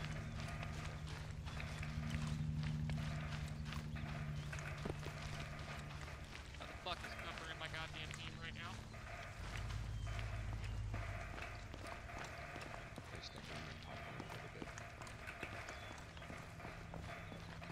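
Boots run quickly over dry, gravelly ground.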